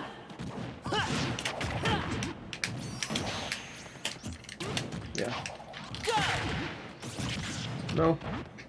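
Video game fighting effects crack and whoosh in quick bursts.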